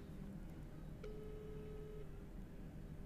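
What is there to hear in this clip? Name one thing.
A ringing tone sounds faintly through a phone earpiece.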